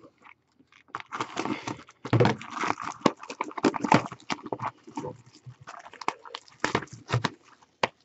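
A plastic wrapper crinkles and rustles as it is torn off a box.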